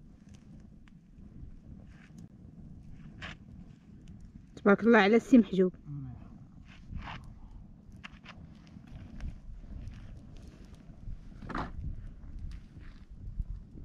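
A campfire crackles and pops close by.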